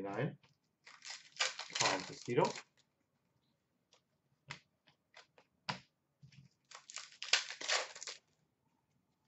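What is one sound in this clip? Trading cards rustle as they are shuffled by hand.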